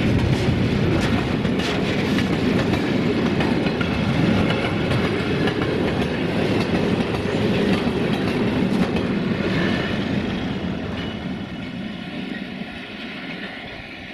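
A freight train rushes past close by with a loud rumble and then fades into the distance.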